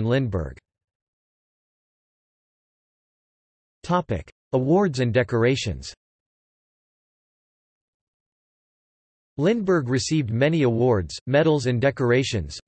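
A man speaks calmly, with pauses, heard through a microphone.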